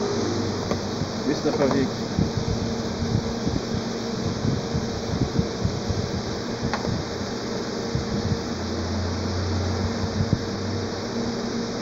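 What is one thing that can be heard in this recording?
A microwave oven hums while powered.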